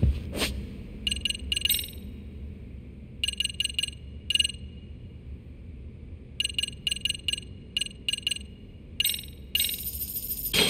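Short electronic menu blips tick in quick bursts.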